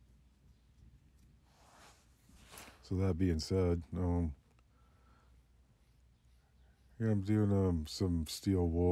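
Steel wool scrubs against rough wood.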